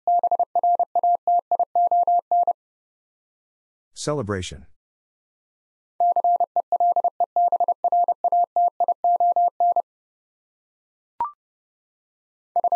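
A Morse code key sends fast, steady beeping tones.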